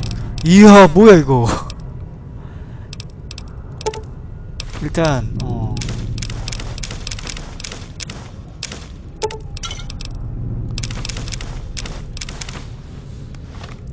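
Short clicks tick quickly one after another.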